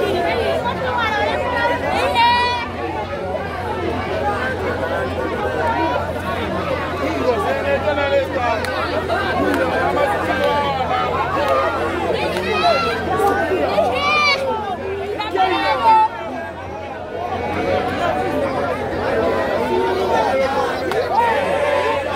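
A crowd of people talk and shout all around, outdoors.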